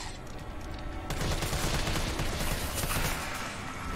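A rifle fires a rapid burst of shots in an echoing corridor.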